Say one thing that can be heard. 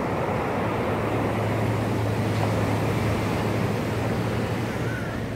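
Waves break and wash up onto a beach.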